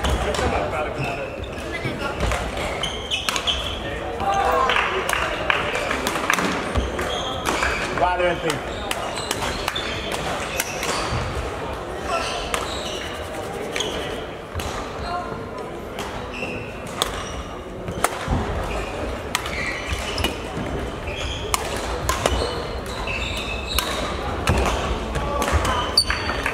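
Rackets strike a shuttlecock with sharp taps, back and forth.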